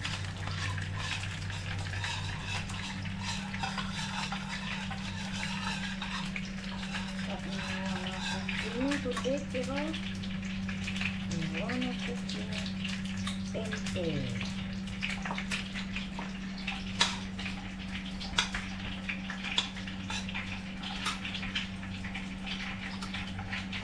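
A spoon clinks and scrapes against a plastic bowl.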